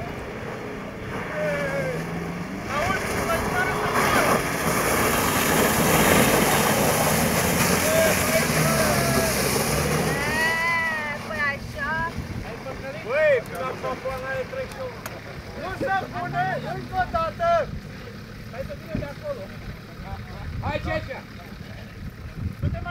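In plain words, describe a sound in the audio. Several men talk with animation nearby, outdoors.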